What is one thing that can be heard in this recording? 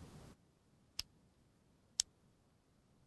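Short interface clicks sound twice.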